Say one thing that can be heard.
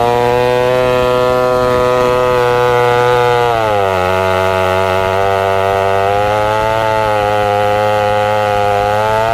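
A chainsaw engine roars steadily, dipping in pitch as it bites into a log.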